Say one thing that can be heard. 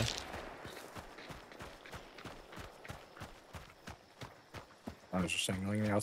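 Footsteps crunch quickly on gravel and rock.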